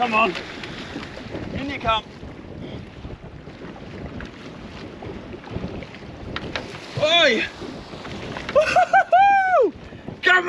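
Waves slosh against a boat's hull.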